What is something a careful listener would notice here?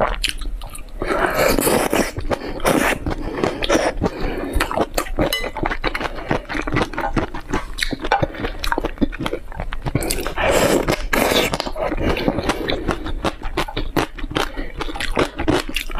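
Sticky food smacks wetly between lips.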